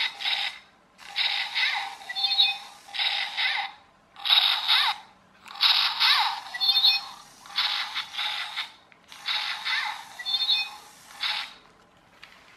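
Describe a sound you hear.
A small toy robot whirs and beeps in short bursts as it rolls.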